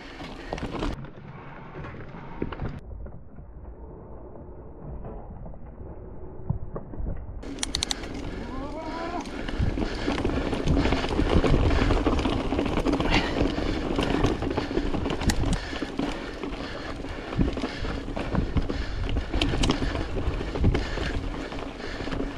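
Bike tyres crunch and rattle over loose stones.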